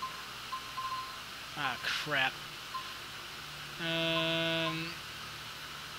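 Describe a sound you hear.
A menu chime beeps.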